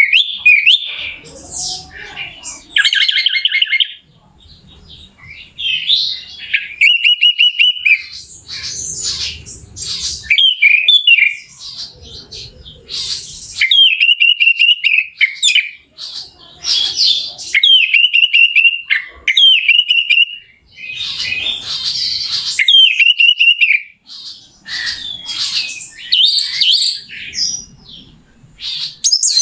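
A songbird sings loud, varied phrases of whistles, trills and chirps close by.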